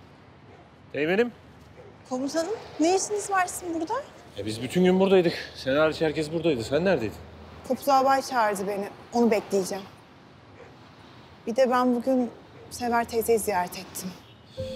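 A young woman speaks firmly, close by.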